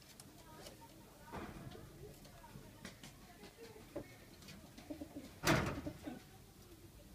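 A pigeon coos softly nearby.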